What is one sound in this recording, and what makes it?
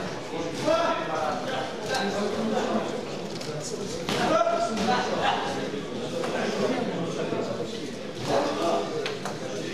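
Men shout encouragement in an echoing hall.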